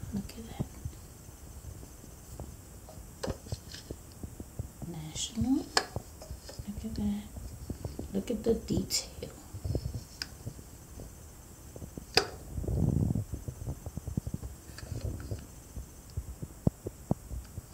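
A small metal object clicks and knocks lightly as it is handled on a hard surface.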